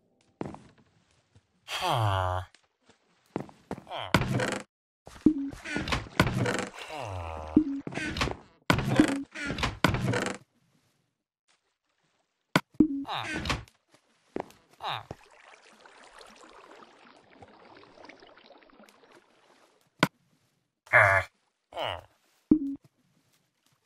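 A villager in a game grunts and mumbles in short nasal hums.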